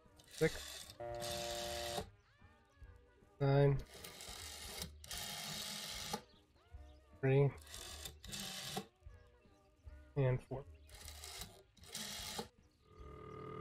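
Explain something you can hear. A rotary telephone dial clicks and whirs as numbers are dialed.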